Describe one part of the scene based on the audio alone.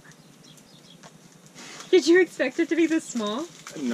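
Paper crinkles as a wrapped item is pulled out.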